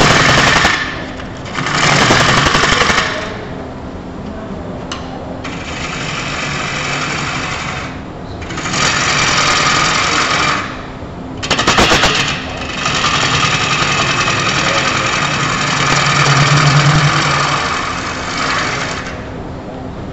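A chisel cuts into spinning wood in rough, scraping bursts.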